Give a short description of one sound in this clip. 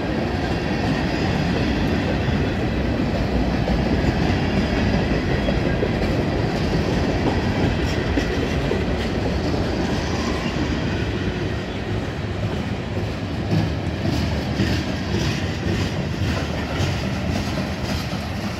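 Train wheels clatter and squeal rhythmically over the rail joints.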